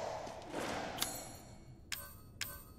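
Short menu clicks and beeps sound.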